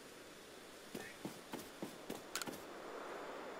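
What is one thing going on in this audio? Footsteps patter quickly on soft ground.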